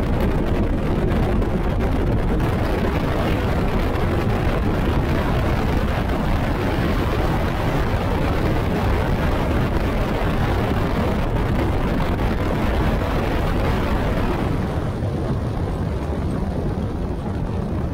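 A boat engine roars at high speed.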